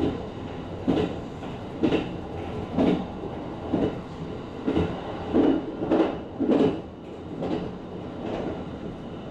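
Train wheels clack over rail joints in a regular rhythm.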